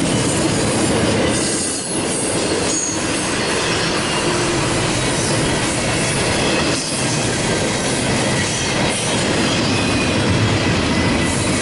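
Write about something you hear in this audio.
A freight train rumbles and clatters loudly past on the tracks close by.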